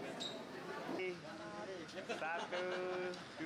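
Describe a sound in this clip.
Women talk and laugh close by.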